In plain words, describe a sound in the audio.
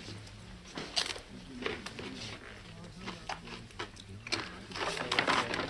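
A man crunches on chips.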